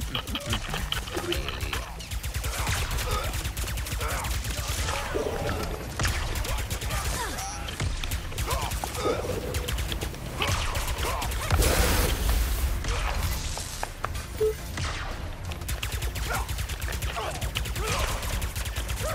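Blaster guns fire rapid bursts of shots.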